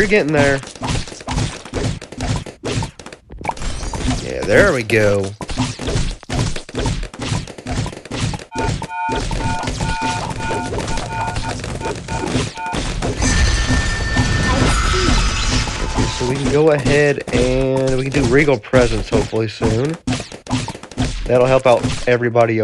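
Cartoon balloons pop in quick, rapid bursts.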